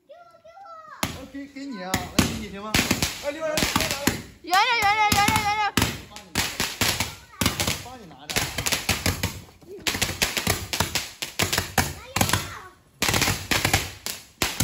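Handheld fireworks shoot off with rapid loud bangs and crackles.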